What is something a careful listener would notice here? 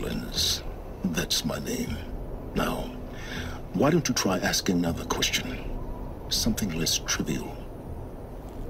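A man speaks calmly through a radio-like filter.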